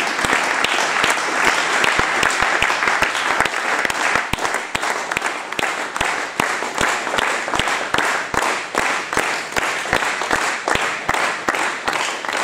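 A man claps his hands close by, in a quick even rhythm.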